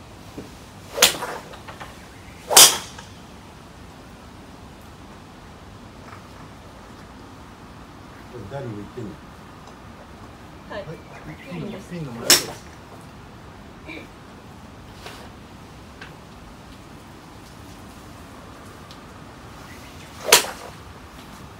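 Golf clubs strike golf balls with sharp cracks.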